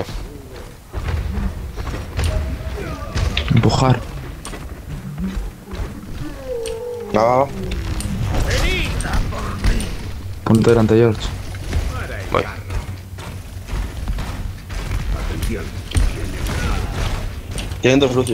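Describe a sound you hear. Gunfire from a game rattles and booms.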